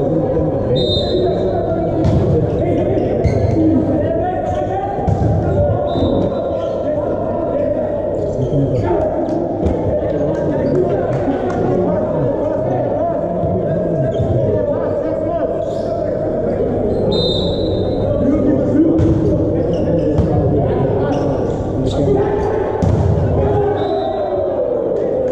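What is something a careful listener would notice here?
Sneakers squeak on an indoor court floor.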